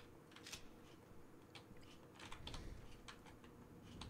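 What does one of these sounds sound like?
A metal locker door swings open with a creak.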